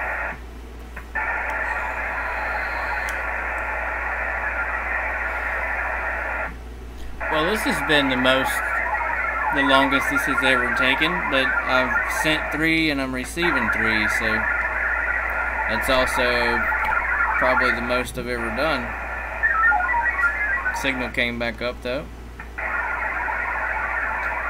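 Radio static hisses steadily.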